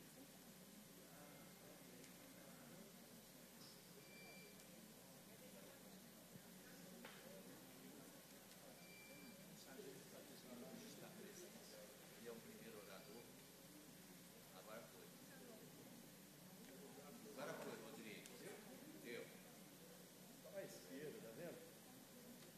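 People murmur and chat quietly in a large hall.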